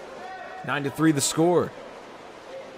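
Spectators cheer and shout loudly from the poolside.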